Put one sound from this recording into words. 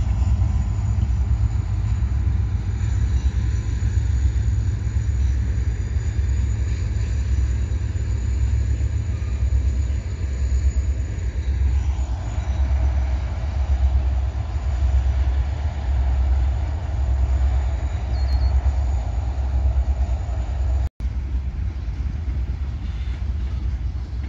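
Wind buffets loudly outdoors with a low roar.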